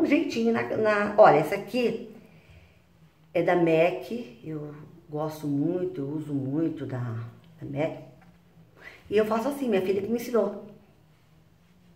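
An elderly woman talks calmly close to the microphone.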